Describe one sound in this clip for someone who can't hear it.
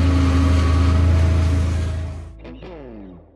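A forage harvester roars loudly as chopped crop blows out of its spout.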